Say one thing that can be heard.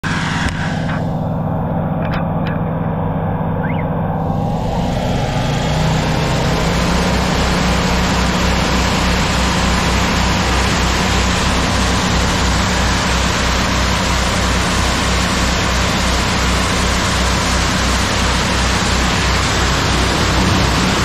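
A motor pump throbs steadily close by.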